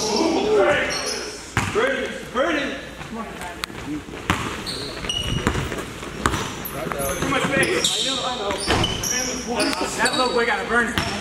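Men shout to each other in a large echoing gym.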